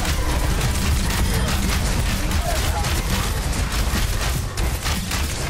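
A video game weapon fires in rapid bursts.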